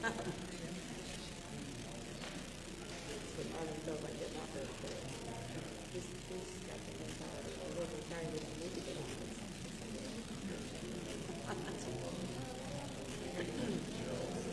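A man speaks calmly in a large room.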